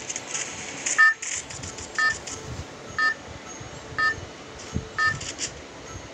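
A countdown beeps once a second.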